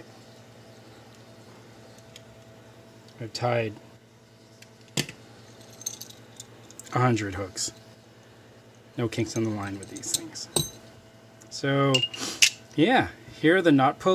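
Small metal fishing parts click and tap together.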